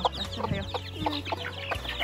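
A hen clucks low.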